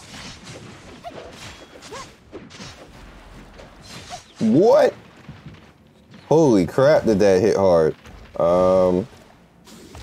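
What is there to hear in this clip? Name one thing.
Electronic battle effects whoosh and burst in a video game.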